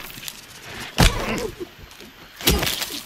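A metal pipe strikes a body with heavy thuds.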